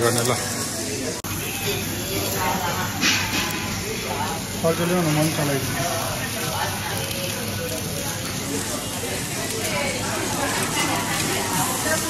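Meat sizzles on a charcoal grill.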